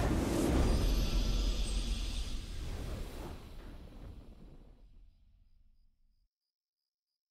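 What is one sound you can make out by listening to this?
A triumphant game victory fanfare rings out and slowly fades away.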